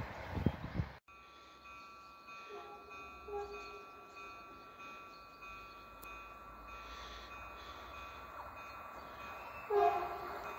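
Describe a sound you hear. A level crossing bell rings steadily.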